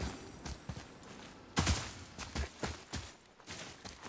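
Footsteps run over stone and dirt.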